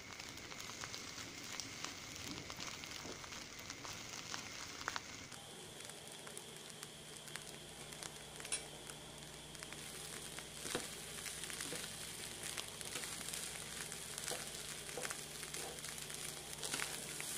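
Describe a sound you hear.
Chopsticks and a spatula scrape and tap against a pan.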